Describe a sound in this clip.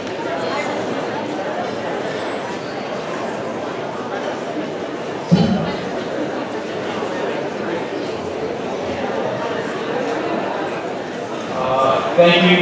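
A large crowd chatters in the background.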